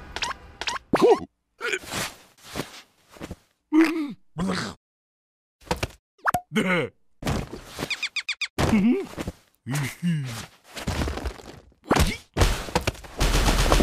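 A small creature babbles and squeals in a high, squeaky voice.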